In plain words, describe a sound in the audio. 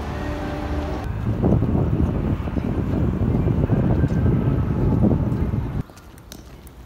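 Footsteps tap on stone paving outdoors.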